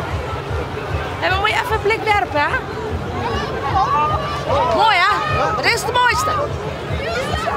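A middle-aged woman shouts and laughs cheerfully close by.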